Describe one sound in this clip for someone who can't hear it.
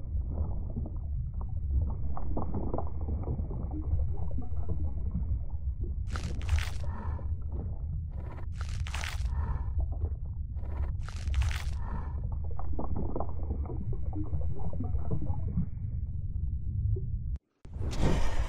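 Deep muffled underwater rumbling churns steadily.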